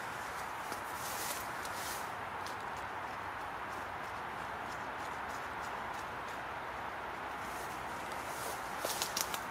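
A hand rustles through leafy plants.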